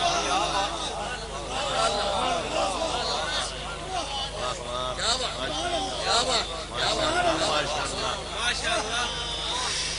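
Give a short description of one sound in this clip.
A middle-aged man speaks with animation through a microphone and loudspeakers.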